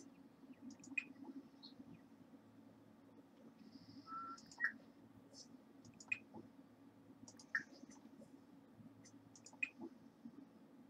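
Soft game menu clicks tick now and then.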